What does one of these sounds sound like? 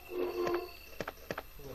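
Buttons on a game controller click.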